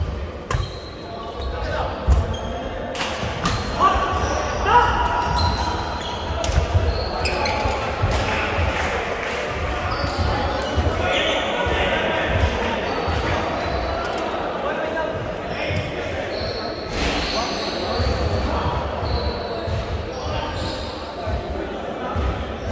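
Many people talk in a large echoing hall.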